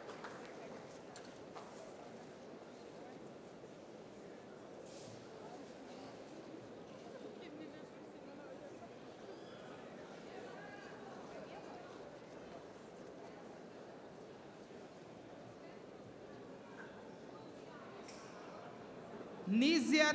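Men murmur quietly to each other in a large room.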